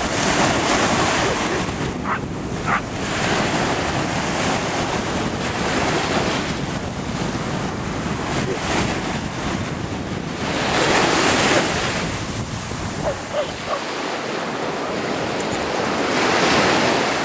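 Small waves wash and break on the shore.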